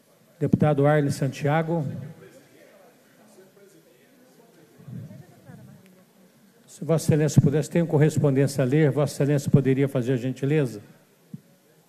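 An elderly man speaks calmly into a microphone, heard over loudspeakers.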